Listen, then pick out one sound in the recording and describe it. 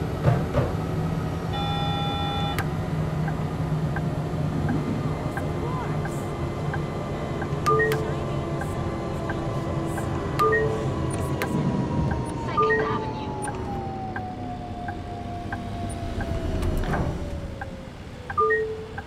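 A tram's wheels rumble on the rails.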